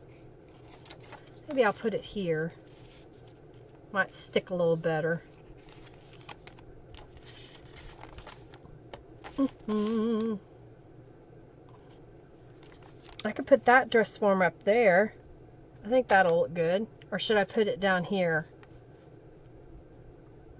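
Paper rustles as a hand handles it.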